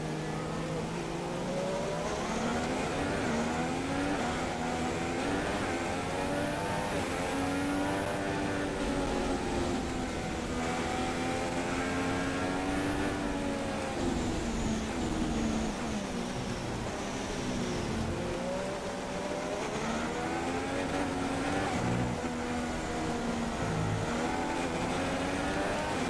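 A racing car engine whines, its pitch rising and falling as it speeds up and slows down.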